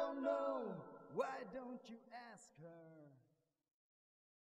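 A man sings close by.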